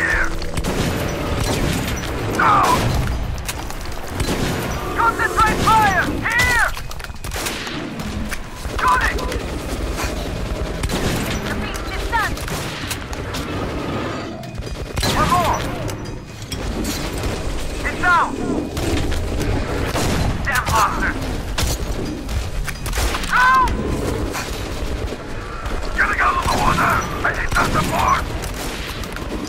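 Shotguns fire in loud, booming blasts again and again.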